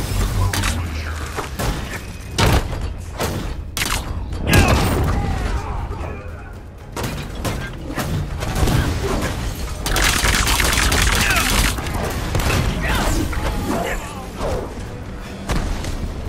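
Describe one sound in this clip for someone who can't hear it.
Heavy punches and blows thud in a fight.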